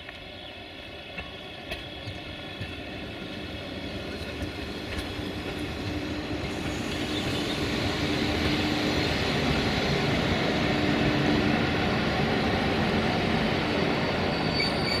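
An electric locomotive hums steadily as it passes close by.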